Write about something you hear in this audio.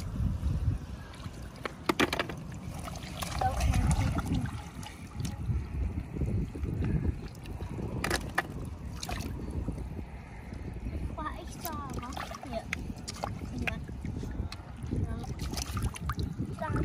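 Hands dig and scoop wet mud with squelching and sloshing.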